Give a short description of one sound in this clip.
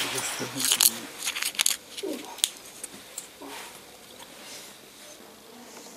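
A plastic container clicks and crinkles as fingers handle it.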